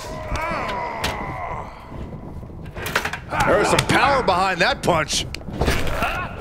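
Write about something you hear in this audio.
A metal ladder clatters and clangs.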